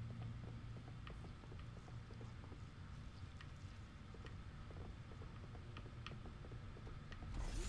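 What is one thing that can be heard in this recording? Footsteps tap softly on a metal floor.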